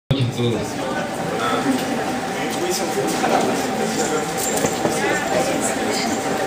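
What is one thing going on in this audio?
A crowd of people murmur and chat nearby.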